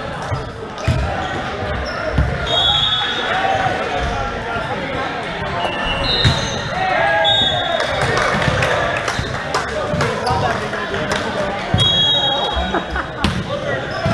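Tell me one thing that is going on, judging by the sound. Young men and women talk and call out in a large echoing hall.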